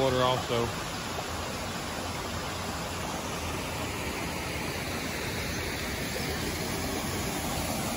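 A stream rushes and splashes over rocks nearby.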